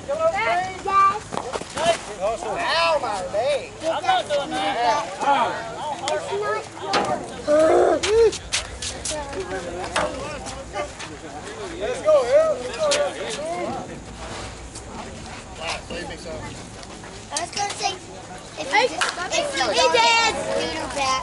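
Men and women talk and call out outdoors.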